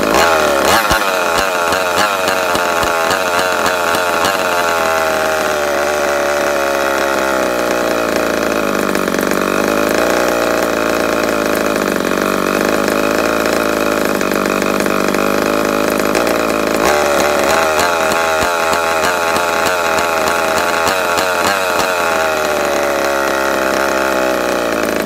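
A small two-stroke engine on a radio-control car runs, its revs rising and falling.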